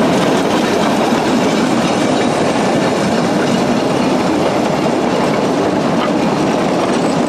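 A small steam locomotive chuffs steadily as it pulls away.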